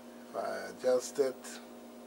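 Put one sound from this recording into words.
Buttons click on a small control panel.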